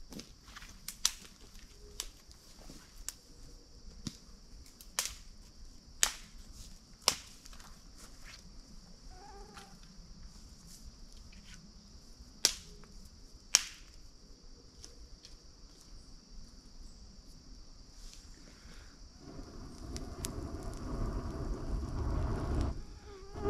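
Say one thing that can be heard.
A campfire crackles and pops.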